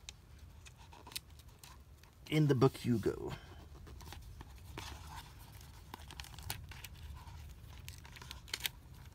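Fingers rub and brush softly against a paper page.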